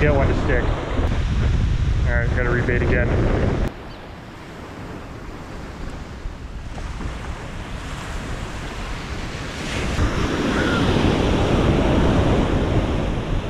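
Waves break and wash up onto a sandy shore.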